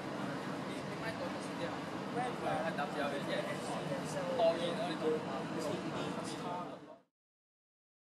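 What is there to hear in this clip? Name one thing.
Street noise hums outdoors.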